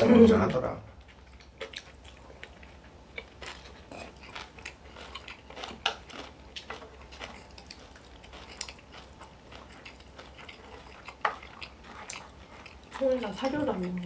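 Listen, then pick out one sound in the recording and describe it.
A man chews and slurps food noisily.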